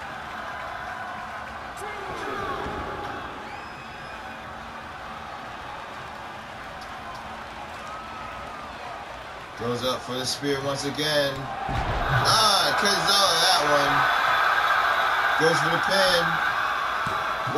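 A large crowd cheers and roars throughout in a big arena.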